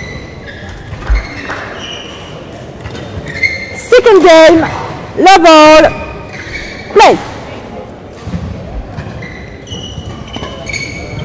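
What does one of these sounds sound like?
Shoes squeak sharply on a court floor in a large echoing hall.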